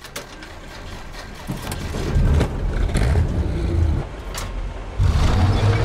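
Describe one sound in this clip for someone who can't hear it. A tank engine starts and rumbles loudly.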